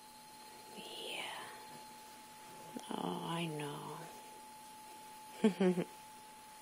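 A dog whines and groans up close.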